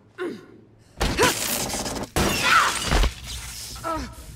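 A body crashes heavily to the floor.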